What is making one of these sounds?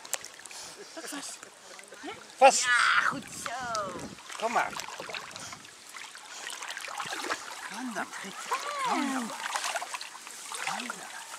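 Water sloshes gently around a swimming dog.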